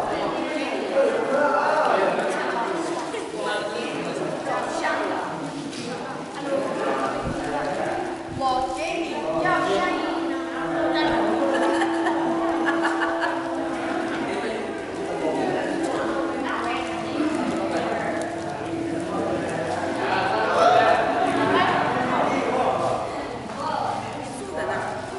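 Many young people chatter at once in a large echoing hall.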